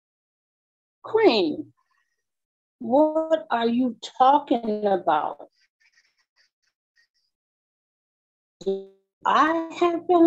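A middle-aged woman talks with animation through a phone.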